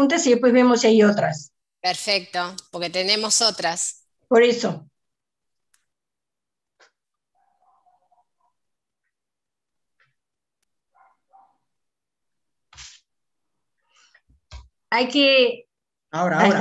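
An older woman speaks calmly over an online call.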